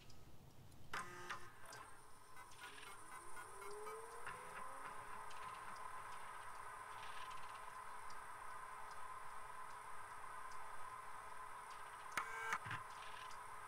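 A computer terminal beeps sharply.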